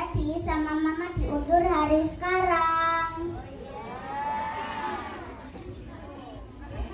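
A young girl sings through a microphone and loudspeakers in a large room.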